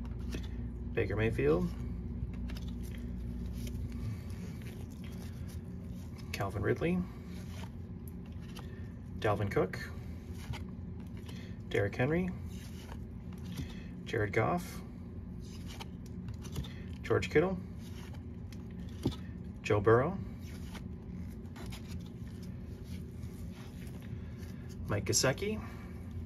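Trading cards slide and rustle against each other in short bursts.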